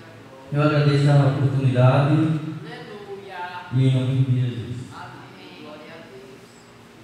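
A young man speaks into a microphone over loudspeakers in an echoing room.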